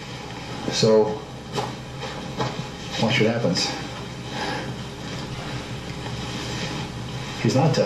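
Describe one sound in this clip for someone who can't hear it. A man speaks with animation nearby, in short bursts.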